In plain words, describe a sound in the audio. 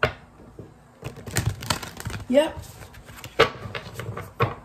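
Cards riffle and flutter as a deck is shuffled by hand.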